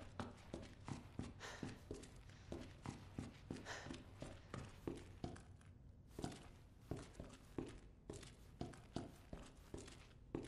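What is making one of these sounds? Footsteps thud at an even pace across a hard floor.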